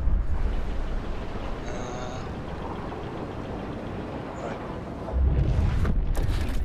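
A strong wind roars steadily, growing louder toward the end.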